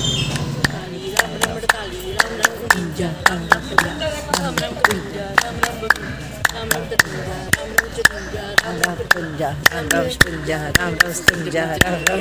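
Women clap their hands in a steady rhythm.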